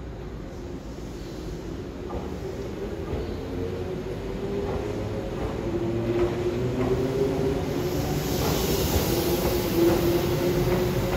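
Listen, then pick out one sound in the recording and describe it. A train pulls away, its motors whining and growing louder.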